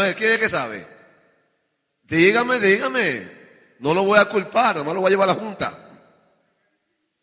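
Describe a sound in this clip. A man preaches with passion into a microphone, in a reverberant hall.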